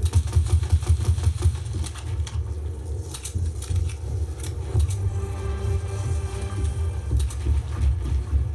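Rapid game sound effects of building and shooting clatter through a loudspeaker.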